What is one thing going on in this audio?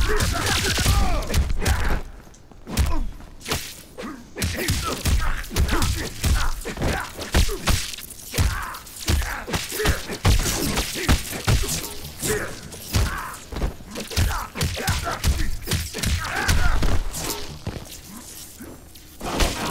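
Fighting game punches and kicks land with heavy thuds and cracks.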